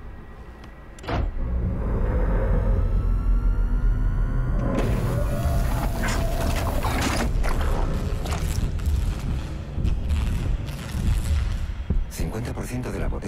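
A heavy machine whirs and clanks as it lifts a large object.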